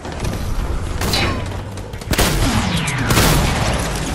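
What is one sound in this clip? Gunshots crack from a game's weapon.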